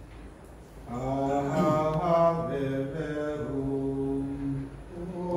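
A man sings a slow hymn nearby.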